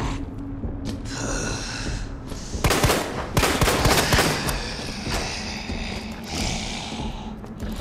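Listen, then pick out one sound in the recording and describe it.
A man groans and snarls hoarsely nearby.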